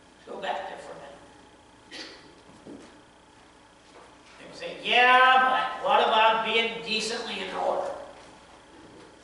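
A man speaks with feeling through a microphone in an echoing hall.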